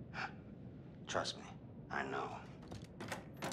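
A man laughs menacingly.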